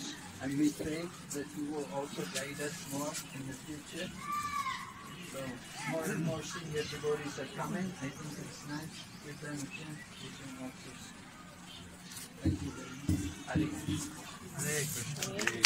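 An elderly man sings into a microphone, heard through a loudspeaker outdoors.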